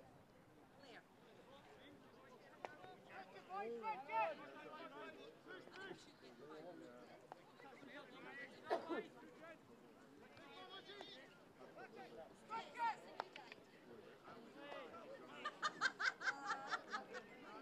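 A crowd of spectators shouts and calls out from a distance outdoors.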